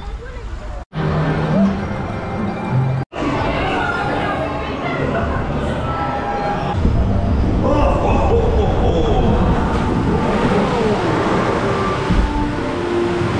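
Ride cars rumble along a track.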